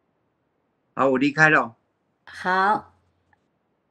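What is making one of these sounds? An elderly man speaks calmly through an online call.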